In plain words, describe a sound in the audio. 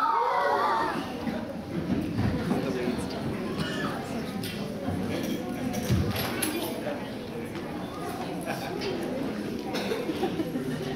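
Children chatter and murmur in the background.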